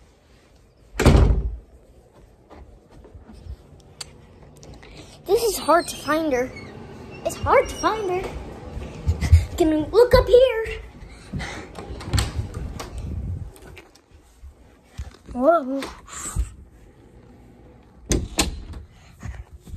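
Thumps and rustles sound as a phone is handled and bumped.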